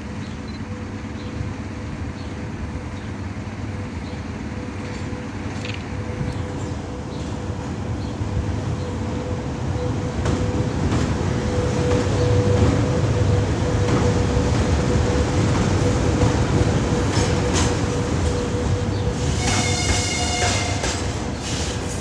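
An electric locomotive approaches with a rising hum and passes close by.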